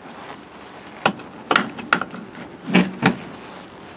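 Metal air line couplings click and clack as they are handled.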